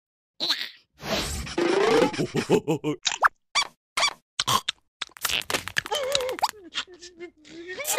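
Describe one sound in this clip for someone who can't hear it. A cartoon creature babbles and exclaims in a high squeaky voice.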